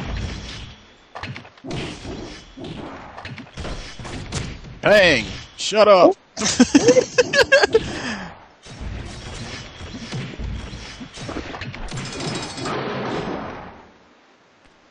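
Weapons slash and strike in quick bursts of combat.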